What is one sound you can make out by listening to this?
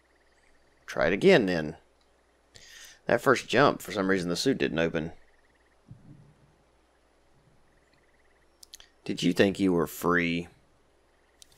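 A man speaks slowly in a low, menacing voice.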